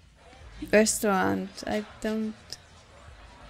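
A woman speaks with feeling, close to a microphone.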